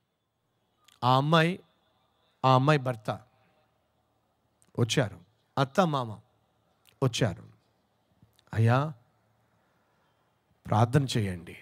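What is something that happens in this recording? A middle-aged man speaks expressively into a microphone in short phrases with pauses.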